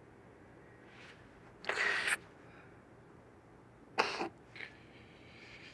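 A young man sniffs and sobs, close by.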